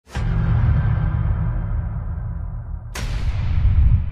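A heavy metal barbell slams down with a deep boom.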